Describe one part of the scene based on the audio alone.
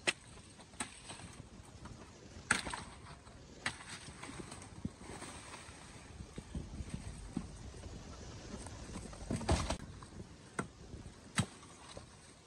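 A machete chops through sugarcane stalks with sharp knocks.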